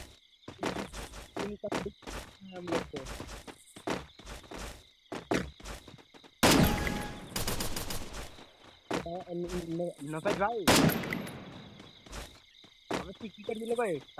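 Footsteps run quickly on hard ground.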